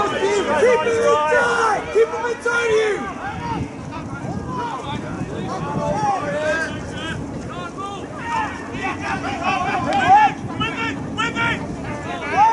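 Rugby players shout to each other in the distance.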